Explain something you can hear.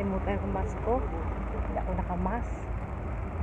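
A woman speaks with animation close to a phone microphone.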